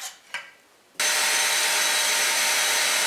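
An electric router whirs loudly and steadily.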